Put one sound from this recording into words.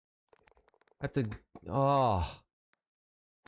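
A young man exclaims loudly into a microphone, close by.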